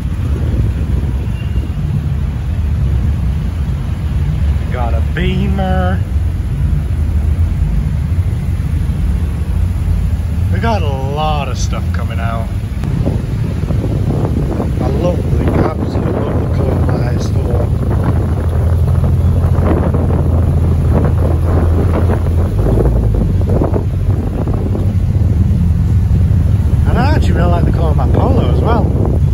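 Tuned cars drive slowly past with deep exhaust rumbles.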